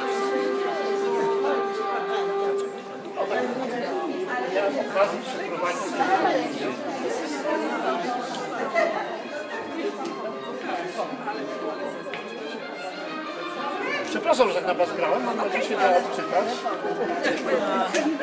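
Several men and women chat at once, close by, in a room with some echo.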